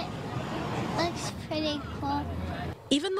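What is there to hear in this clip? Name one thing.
A young girl speaks into a microphone close by.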